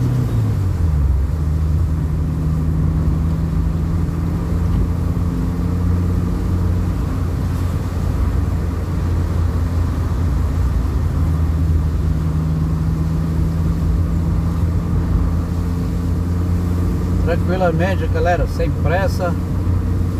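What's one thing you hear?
A car engine hums, heard from inside while driving on a wet road.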